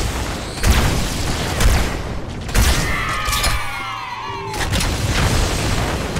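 Electric blasts crackle and explode.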